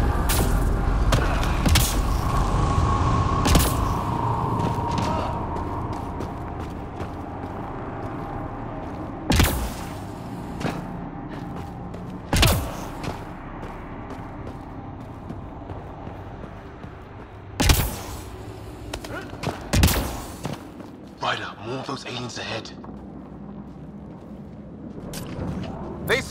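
Footsteps crunch and scrape on rock.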